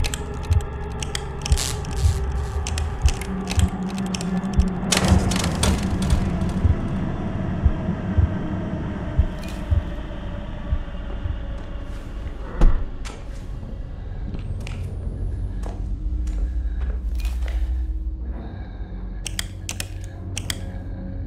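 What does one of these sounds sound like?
Switches click sharply as they are flipped on and off.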